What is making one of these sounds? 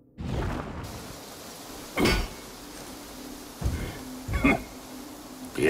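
A hammer strikes metal on an anvil with ringing clangs.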